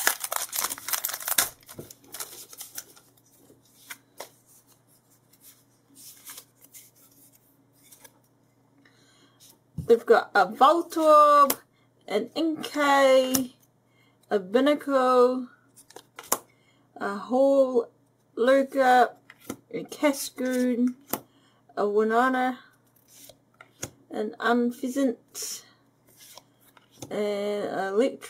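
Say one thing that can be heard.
Stiff cards rustle and slide against each other as they are handled.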